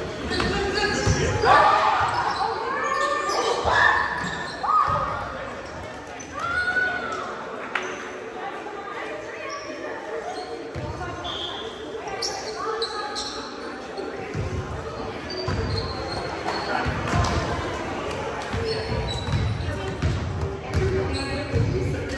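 A volleyball thumps off hands and arms.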